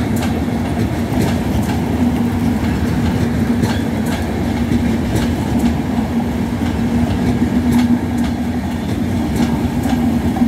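A passenger train rumbles past close by.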